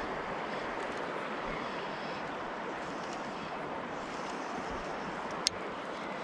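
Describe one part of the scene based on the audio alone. A fishing line swishes through the air during a cast.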